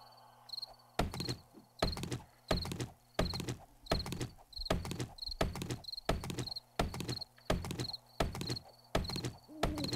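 An axe chops into wood.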